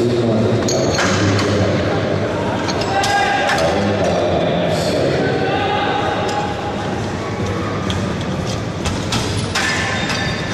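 A loaded barbell clanks against its metal rack.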